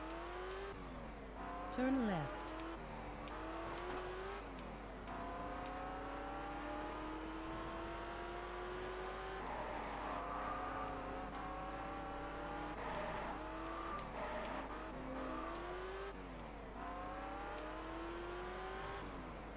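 A car engine revs up and drops as gears shift, over and over.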